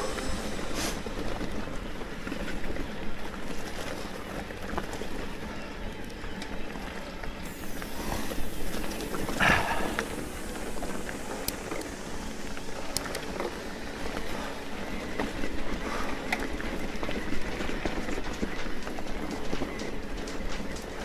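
Wind rumbles past outdoors.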